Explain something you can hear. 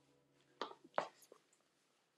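A woman's heels click on the floor.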